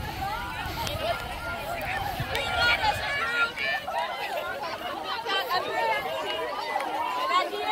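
A small group of adults talks and calls out at a distance.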